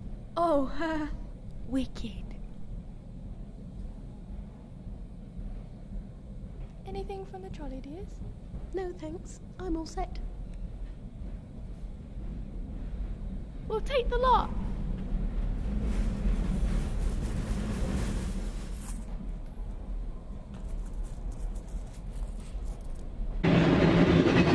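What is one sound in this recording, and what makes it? A train carriage rumbles steadily along the tracks.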